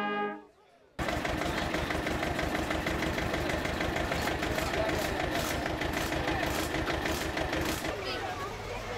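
A tractor engine idles with a steady rapid chugging.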